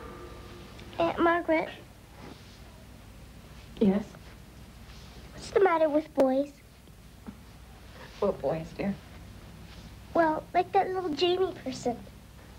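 A young woman speaks breathlessly, close by.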